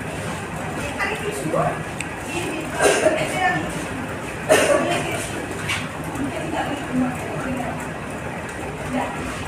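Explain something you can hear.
A woman speaks to a room of children from a short distance.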